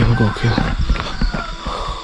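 Leaves rustle as plants brush past close by.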